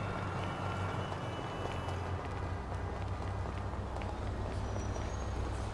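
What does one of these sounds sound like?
Footsteps slap quickly on pavement as a man runs.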